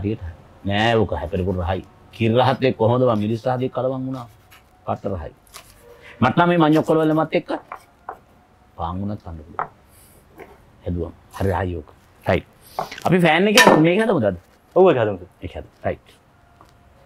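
A man talks with animation, close by.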